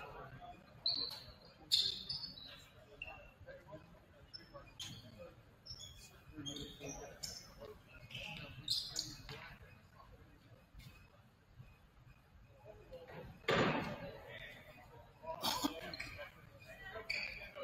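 Basketball sneakers squeak sharply on a hardwood court.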